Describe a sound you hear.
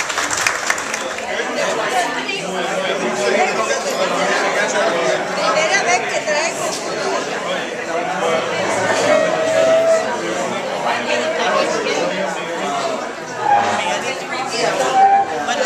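Several adults chatter together close by.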